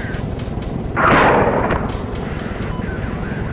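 A bomb explodes with a loud, rumbling boom.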